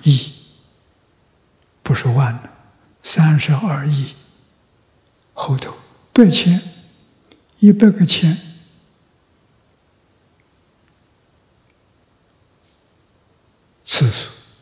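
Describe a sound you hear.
An elderly man speaks calmly and deliberately into a microphone, with long pauses.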